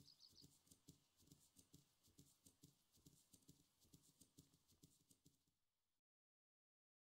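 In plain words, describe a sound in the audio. A warthog trots through rustling grass.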